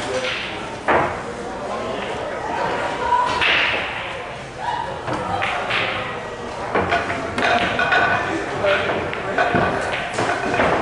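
Men talk in the background.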